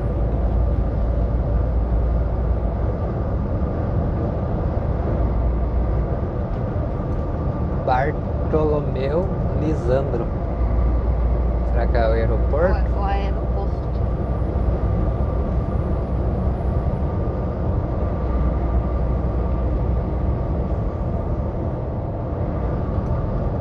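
A car's engine and tyres rumble steadily on a road from inside the car.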